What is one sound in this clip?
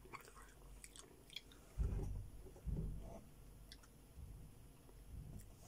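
A woman chews juicy melon close to the microphone, with soft wet smacking.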